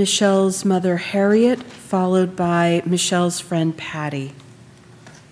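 A woman sings a slow chant through a microphone in a large echoing hall.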